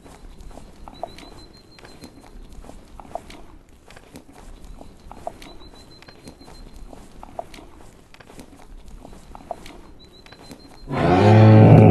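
Hooves crunch steadily on snow.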